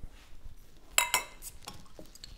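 Glasses clink together.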